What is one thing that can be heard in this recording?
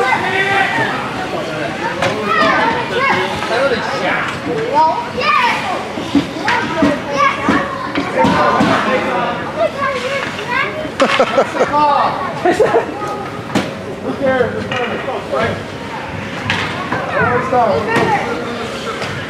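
Many children's voices chatter and call out nearby, echoing in a large hall.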